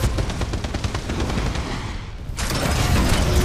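A rapid burst of gunfire rattles.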